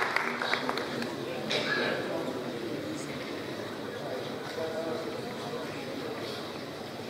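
A man speaks calmly through a loudspeaker in a large hall.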